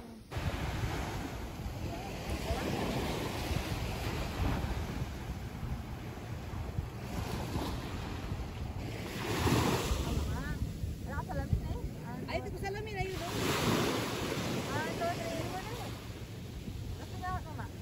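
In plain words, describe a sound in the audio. Small waves wash onto the shore and break in soft surges.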